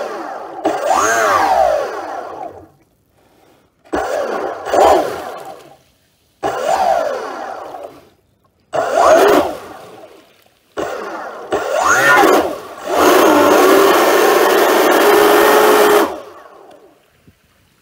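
A small motor revs up and down in repeated short bursts.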